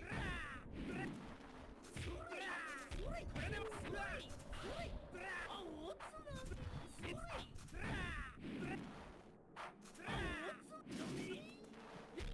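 Swords slash and strike with sharp hits.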